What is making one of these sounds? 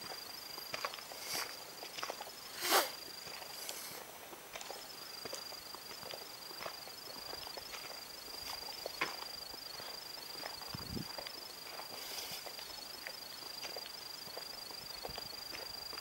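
Footsteps crunch on a dirt path outdoors.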